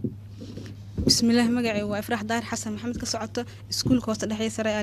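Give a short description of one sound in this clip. A young girl speaks into a microphone.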